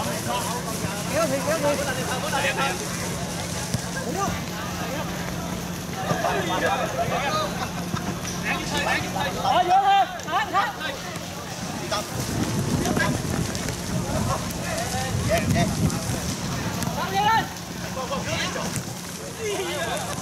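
A crowd of spectators murmurs in the distance.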